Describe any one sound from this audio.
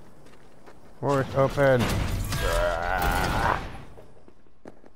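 A heavy metal door slides open with a scraping rumble.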